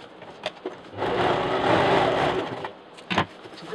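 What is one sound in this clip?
A sewing machine whirs briefly as it stitches.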